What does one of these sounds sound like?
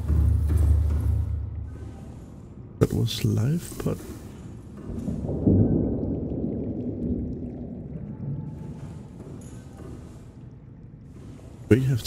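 Water laps and sloshes gently in an indoor pool.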